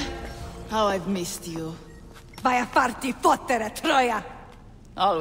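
Another woman answers calmly.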